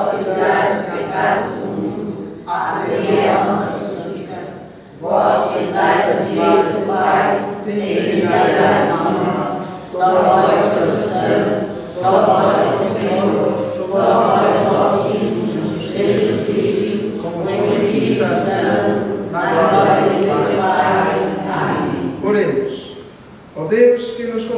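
A keyboard plays along with the singing.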